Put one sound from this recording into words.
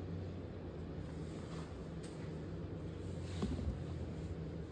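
A woman speaks softly close by, muffled.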